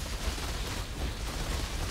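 Fire roars and whooshes in a blast.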